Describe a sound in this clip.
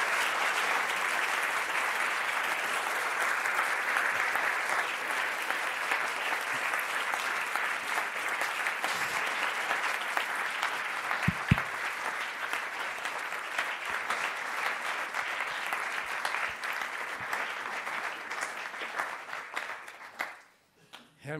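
An audience applauds in a large hall, then the clapping stops.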